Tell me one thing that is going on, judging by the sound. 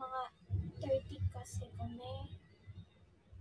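A young woman talks casually and close to a phone microphone.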